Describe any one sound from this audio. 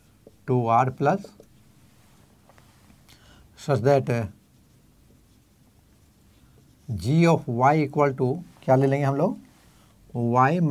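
An elderly man speaks calmly in a lecturing tone, in short phrases with pauses.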